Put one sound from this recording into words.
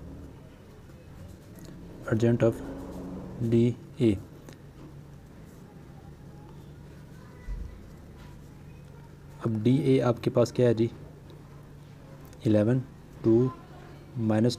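A pen scratches softly on paper.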